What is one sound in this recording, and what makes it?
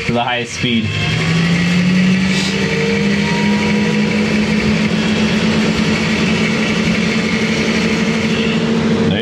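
A ceiling fan whirs up to speed and then hums steadily.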